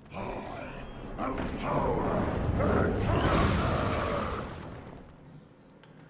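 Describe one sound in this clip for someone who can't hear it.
A fiery explosion roars loudly in a game.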